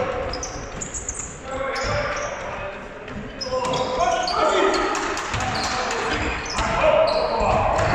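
Young men shout to each other across a large echoing hall.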